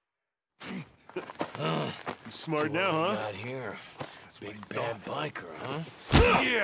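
A man speaks with a gruff, mocking voice.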